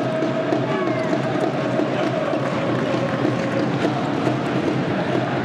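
A large crowd cheers and chants loudly in an echoing indoor arena.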